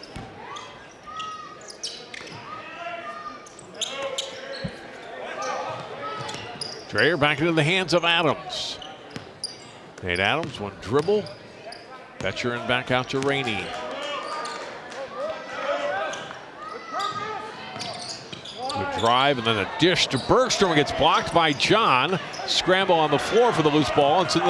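A basketball bounces on a hardwood court.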